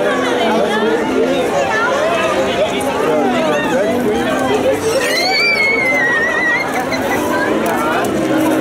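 A large outdoor crowd chatters all around.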